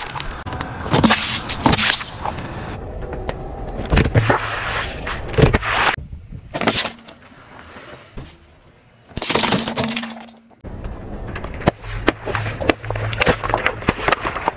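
Plastic bottles crunch and burst under a car tyre.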